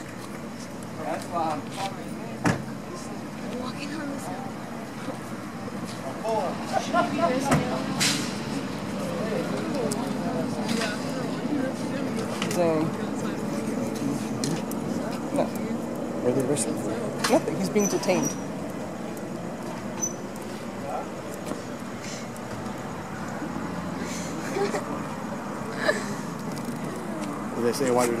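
Men talk nearby in low, calm voices outdoors.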